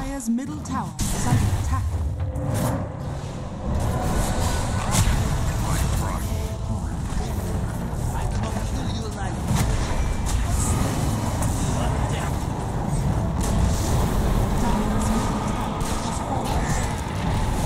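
Magic blasts and crackles boom in quick succession during a fight.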